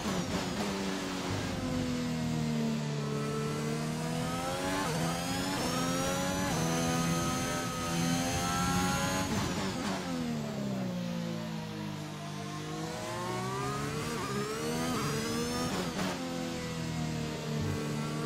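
A racing car engine screams, rising in pitch as it speeds up and dropping sharply as it brakes and shifts down.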